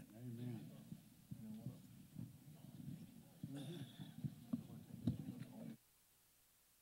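Several men and women chat nearby in a crowd.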